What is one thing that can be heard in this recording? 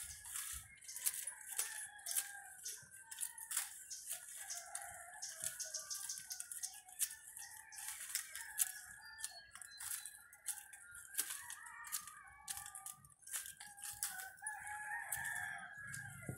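Pruning shears snip twigs with sharp clicks.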